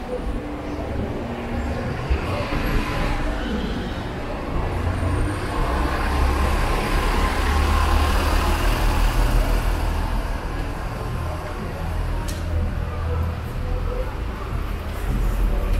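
A crowd of pedestrians murmurs in a busy street.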